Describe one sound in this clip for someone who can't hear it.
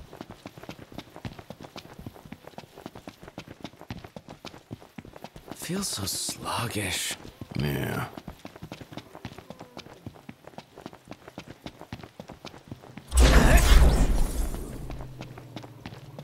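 Footsteps run quickly over dry ground.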